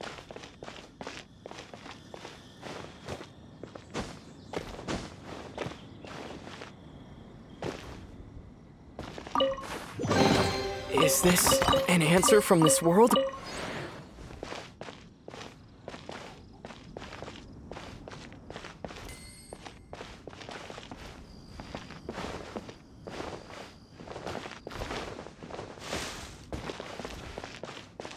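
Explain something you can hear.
Footsteps tap quickly on wooden boards.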